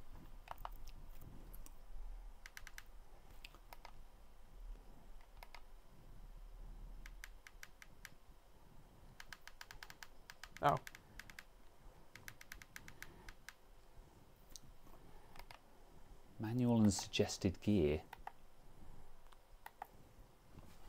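Buttons on a steering wheel click sharply, several times.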